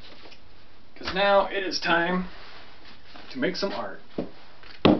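A man speaks briefly and casually close by.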